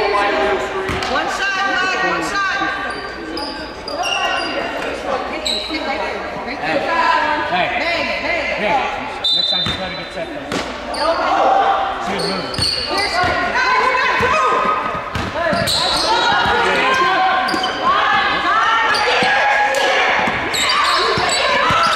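Sneakers squeak sharply on a hardwood court in an echoing gym.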